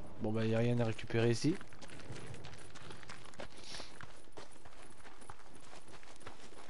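Footsteps run over gravel.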